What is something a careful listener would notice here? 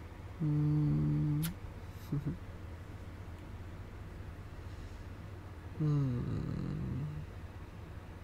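A young man speaks softly and close to the microphone.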